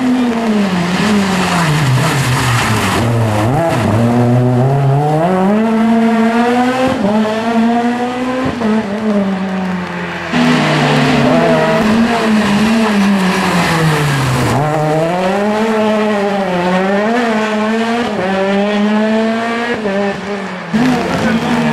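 A rally car's engine revs high, drops under braking and climbs again through a tight bend.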